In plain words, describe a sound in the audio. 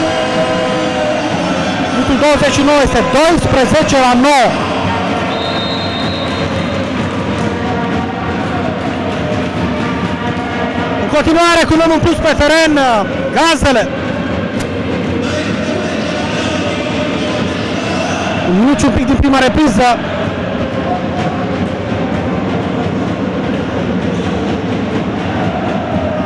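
A crowd of spectators murmurs and cheers steadily in a large echoing hall.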